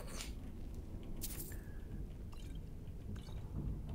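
Coins jingle briefly as a purse is picked up.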